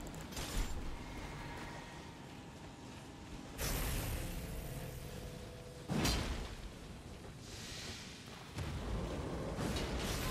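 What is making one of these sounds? Lightning spells crackle and boom in short bursts.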